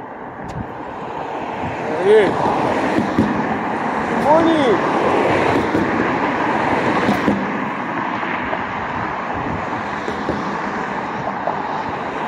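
Cars pass by on a street outdoors.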